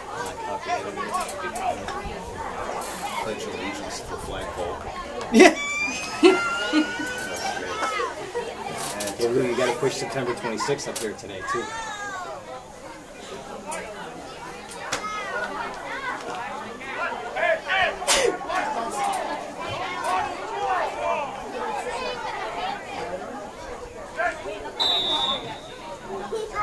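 Young players and spectators shout and cheer outdoors.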